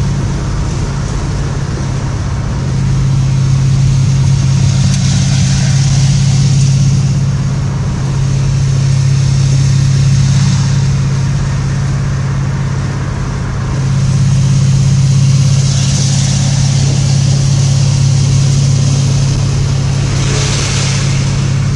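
A car engine rumbles steadily and swells as it speeds up.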